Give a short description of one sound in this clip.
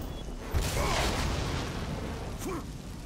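Wood bursts apart with a loud crash.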